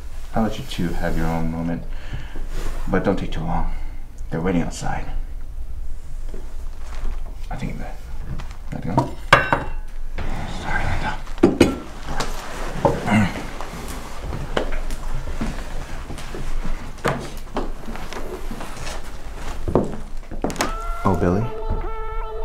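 A man speaks in a low, tense voice.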